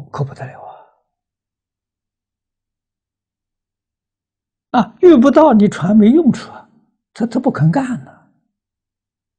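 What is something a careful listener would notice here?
An elderly man speaks calmly and close up, in short phrases with pauses.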